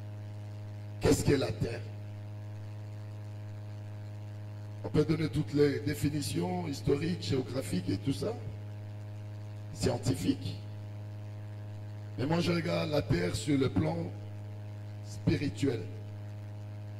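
A middle-aged man preaches with animation into a microphone, heard through loudspeakers in bursts with pauses.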